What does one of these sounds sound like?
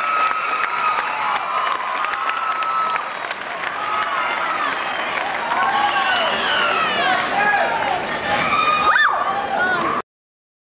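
A large crowd murmurs and cheers in the background.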